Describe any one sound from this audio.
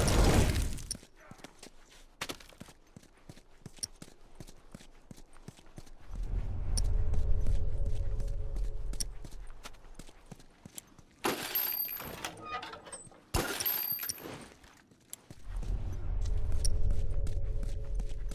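Footsteps patter quickly across a hard floor.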